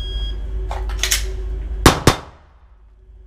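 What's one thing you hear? An axe thuds loudly into a wooden target.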